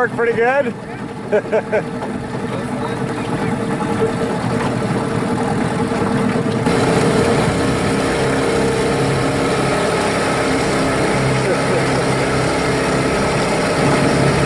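A small boat motor drones across the water.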